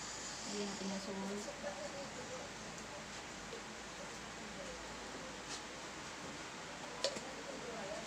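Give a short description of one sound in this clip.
Seasoning is shaken from a shaker into a pot.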